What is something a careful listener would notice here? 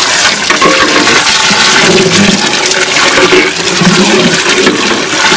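A ladle stirs and splashes thick stew in a large pot.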